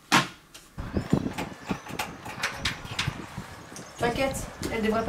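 A key rattles and clicks in a door lock.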